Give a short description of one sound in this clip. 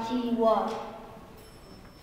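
A young man speaks through a microphone, reading out.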